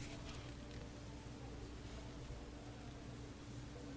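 Fingers tap lightly on skin close by.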